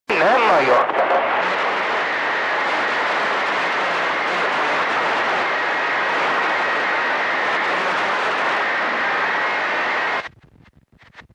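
A radio hisses with loud static.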